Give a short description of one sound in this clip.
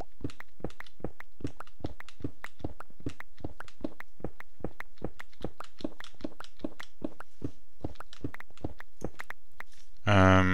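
A pickaxe chips rapidly and steadily at stone.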